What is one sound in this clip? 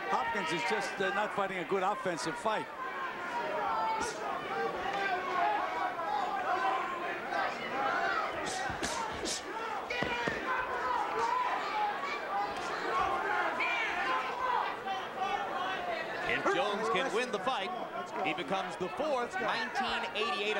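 A large crowd cheers and shouts in a big arena.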